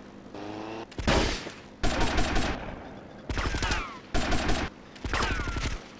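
Gunfire rings out in short loud bursts.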